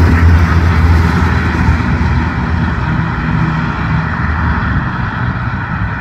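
A V8 sports car rumbles as it drives away.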